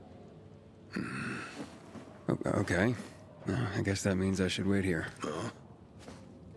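A man growls and speaks gruffly, close by.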